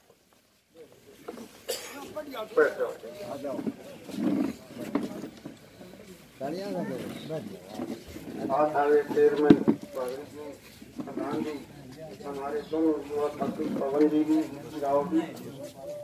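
A man speaks to a seated crowd outdoors.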